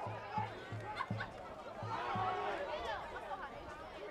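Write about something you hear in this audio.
Football players collide with dull thuds of padding.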